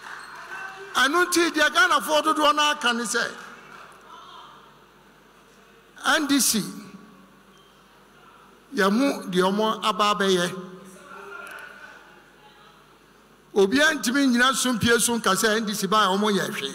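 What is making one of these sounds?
A man speaks loudly through a microphone and loudspeakers, in short phrases with pauses.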